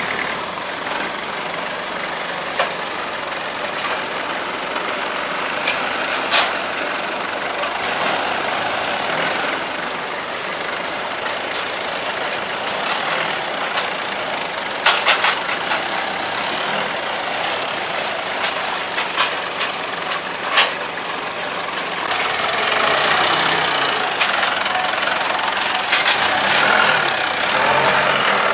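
A forklift engine runs and hums nearby.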